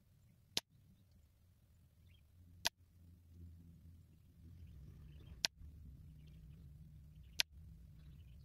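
Air rifle pellets strike a paper target on a wooden post with sharp thwacks.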